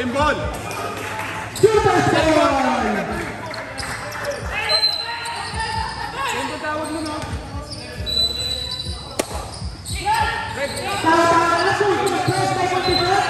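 A crowd of spectators cheers and shouts loudly nearby.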